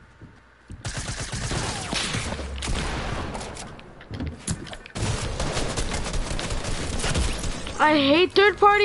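Rapid gunfire crackles loudly.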